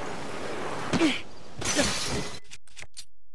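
A shield shatters with a sharp crash.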